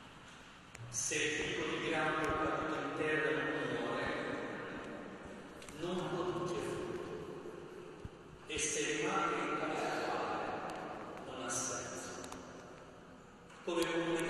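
A group of voices sings slowly in a large echoing hall.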